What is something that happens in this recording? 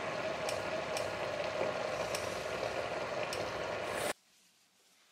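A metal lid rattles on a simmering pot.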